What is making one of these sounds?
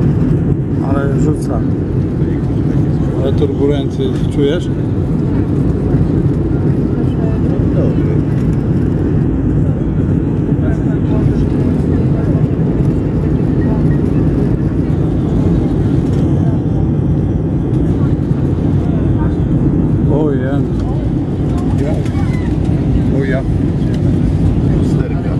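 A jet airliner's engines roar steadily from inside the cabin.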